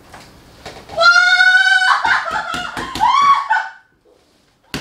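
A woman cries out loudly in pain nearby.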